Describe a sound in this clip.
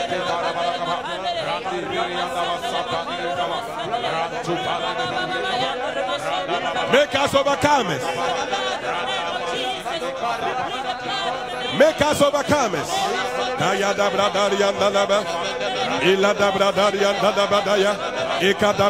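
A large crowd sings and shouts together.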